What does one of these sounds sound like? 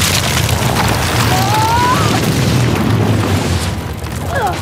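A loud explosion rumbles deeply.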